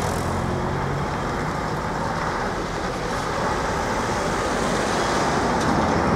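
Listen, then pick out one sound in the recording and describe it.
A diesel dump truck approaches.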